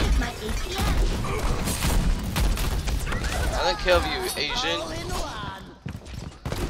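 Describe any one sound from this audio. Game weapons fire and clash in a fast, noisy fight.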